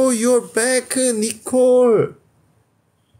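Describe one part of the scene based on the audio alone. A young man talks close to a phone microphone in a lively, sing-song voice.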